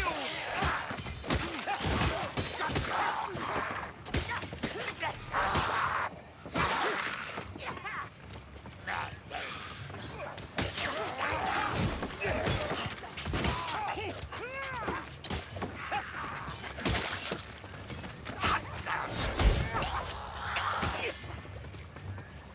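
Creatures snarl and shriek in pain.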